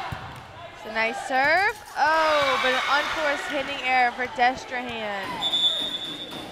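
Young women cheer and shout loudly in an echoing gym.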